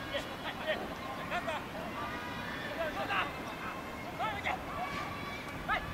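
Distant players shout to each other across an open field outdoors.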